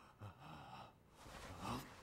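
Bedding rustles as a man tosses under a blanket.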